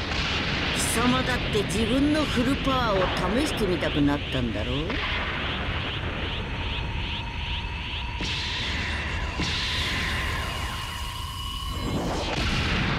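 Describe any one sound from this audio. A fierce energy aura roars and crackles.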